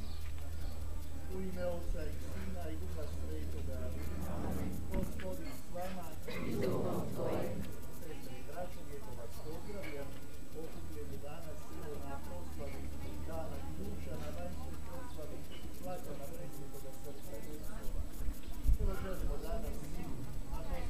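A crowd of older men and women murmur and talk outdoors.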